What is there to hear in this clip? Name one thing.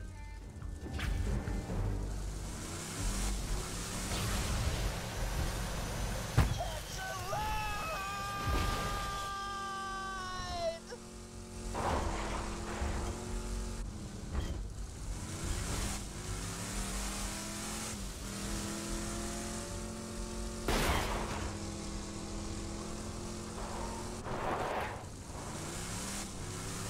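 Electric sparks crackle and buzz.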